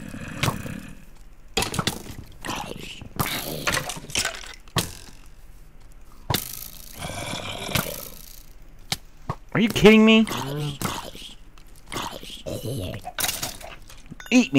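A sword strikes monsters with sharp thuds.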